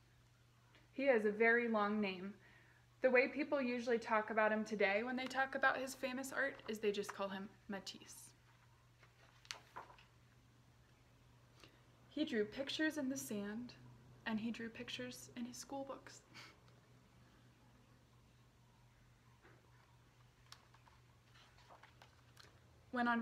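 A young woman reads aloud from a book, close to the microphone, in a calm, expressive voice.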